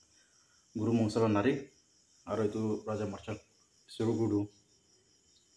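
A man speaks calmly, close to the microphone.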